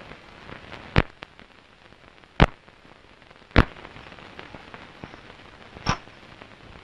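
A window latch clicks and knocks.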